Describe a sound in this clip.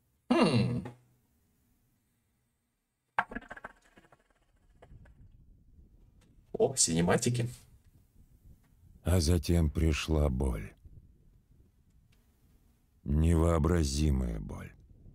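A young man speaks into a close microphone, with pauses.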